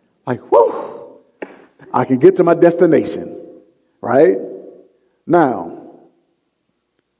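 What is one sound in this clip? A man preaches with animation through a microphone in a large echoing hall.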